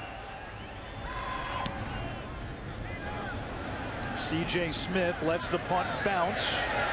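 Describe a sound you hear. A large stadium crowd cheers and roars.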